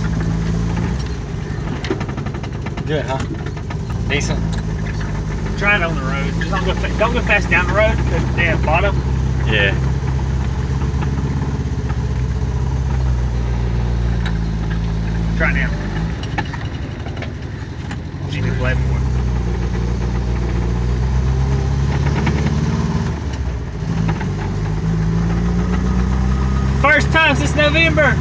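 A small four-cylinder car engine drones from inside the car as it drives, rising and falling in pitch through the gears.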